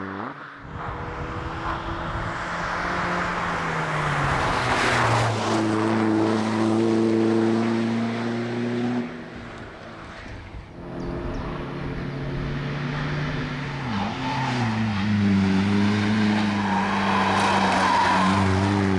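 A race car engine revs hard and roars up through the gears.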